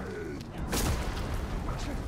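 A heavy blow lands with a loud crash.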